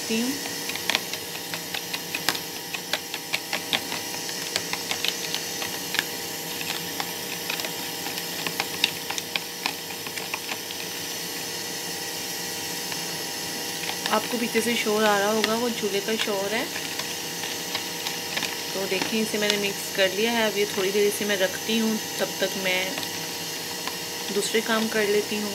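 A spoon scrapes and clinks against a plastic bowl while stirring a liquid.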